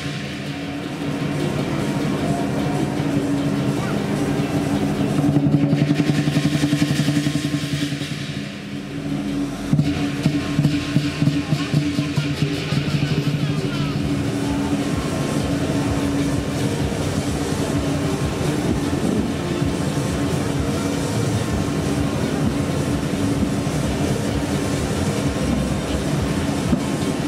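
Drums and cymbals play a loud, fast rhythm for a lion dance.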